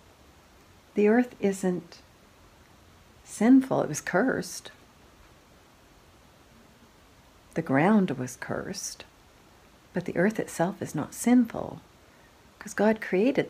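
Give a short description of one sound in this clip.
A middle-aged woman talks calmly and close by, in short bursts with pauses.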